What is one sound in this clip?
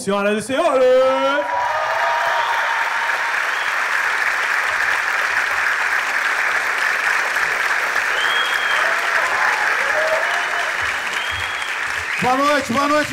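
A large audience claps and cheers.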